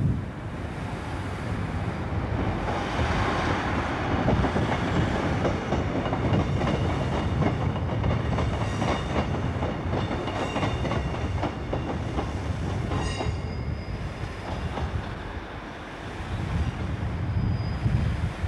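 A passenger train rumbles past on the tracks.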